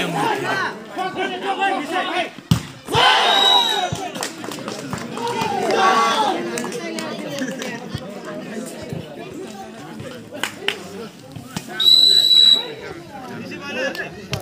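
Young men shout and call out outdoors during a ball game.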